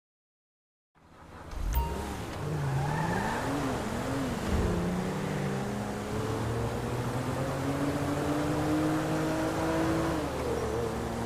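A car engine hums and revs as it speeds along.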